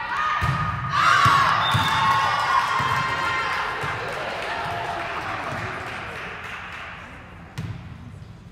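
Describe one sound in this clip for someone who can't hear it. Spectators cheer and shout loudly, then the cheering slowly fades.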